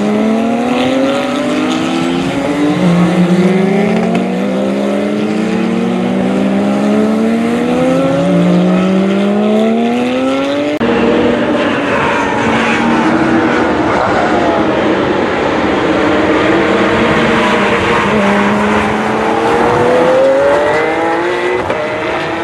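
Race car engines roar loudly and rise in pitch as they accelerate through gear changes.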